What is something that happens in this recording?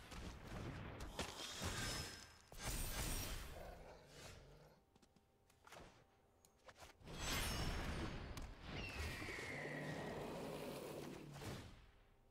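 Digital game sound effects whoosh and chime.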